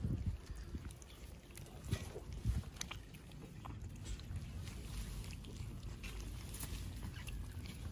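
Puppies lap and chew food from a metal tray up close.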